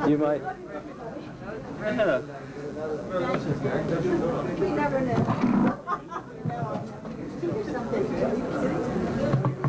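A crowd of elderly men and women chatter nearby.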